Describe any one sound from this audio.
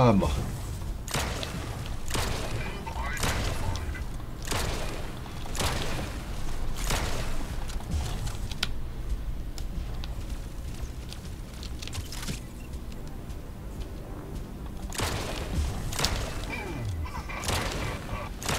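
Weapons fire in rapid bursts with loud blasts.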